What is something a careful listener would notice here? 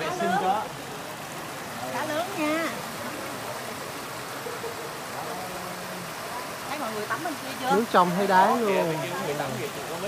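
Water pours from spouts into a pool.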